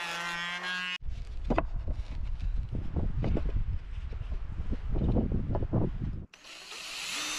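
Wooden boards knock and thump together.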